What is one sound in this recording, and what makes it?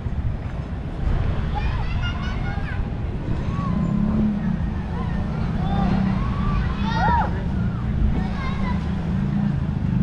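Young children shout and chatter at a distance.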